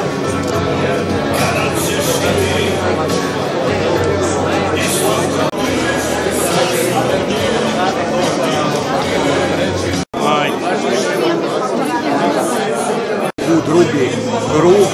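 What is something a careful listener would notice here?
A crowd of men and women chatter in a large room.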